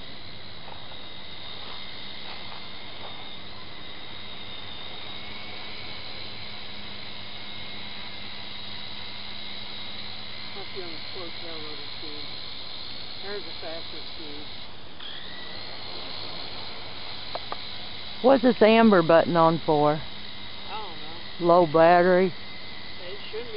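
A helicopter drones steadily overhead with a high whine.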